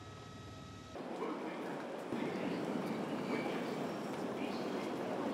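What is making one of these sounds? Footsteps and rolling suitcase wheels clatter on a hard floor.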